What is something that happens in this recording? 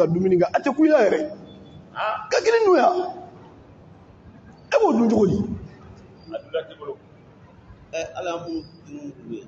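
A man preaches forcefully into a microphone in bursts, heard through a loudspeaker in an echoing hall.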